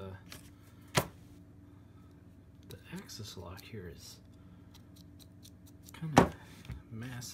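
A folding knife snaps shut with a click.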